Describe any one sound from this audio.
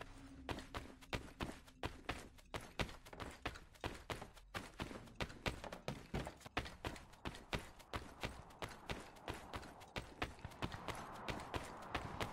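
Quick footsteps run on a hard floor.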